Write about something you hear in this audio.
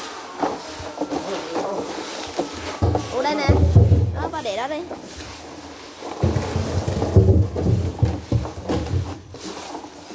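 Water sloshes and splashes as a hand stirs it in a barrel.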